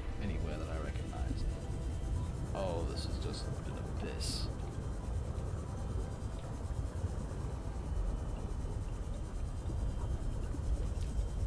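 A small underwater vehicle's motor rumbles low and steadily.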